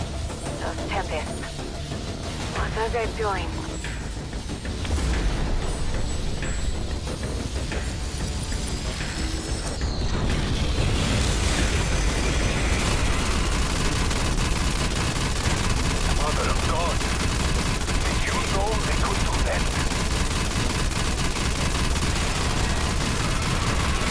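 A deep, steady rumble drones.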